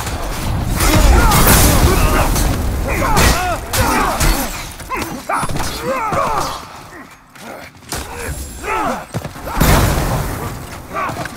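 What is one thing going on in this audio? Fire bursts and roars in loud explosions.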